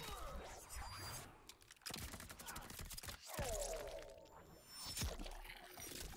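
A blade whooshes through the air and slices.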